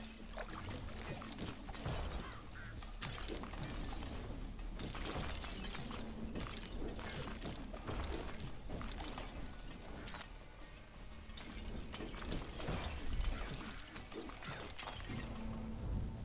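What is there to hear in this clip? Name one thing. Spell blasts, slashes and lightning strikes crackle and boom in quick succession.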